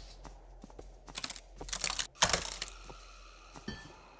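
A wooden crate lid creaks open and thuds.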